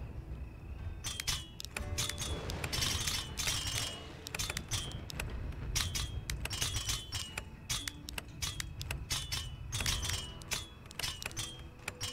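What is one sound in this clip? A metal lockpick scrapes and clicks against the pins of a lock.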